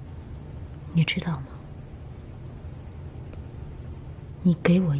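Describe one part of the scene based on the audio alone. A woman speaks softly to a man, close by.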